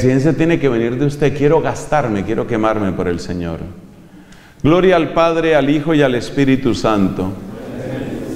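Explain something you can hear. A middle-aged man speaks calmly and slowly into a microphone nearby.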